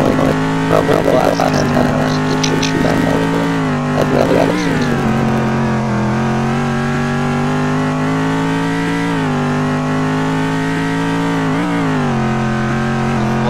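A racing car engine roars steadily, its pitch dipping at each gear change.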